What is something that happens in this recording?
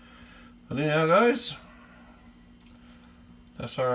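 Gravy pours softly from a ladle onto a plate.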